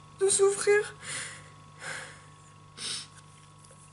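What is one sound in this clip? A young woman sighs and breathes out audibly.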